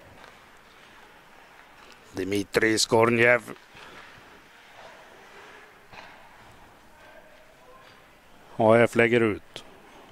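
Skates scrape and swish on the ice.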